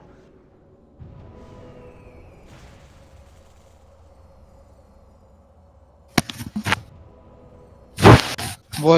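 Fantasy battle sound effects clash and hum.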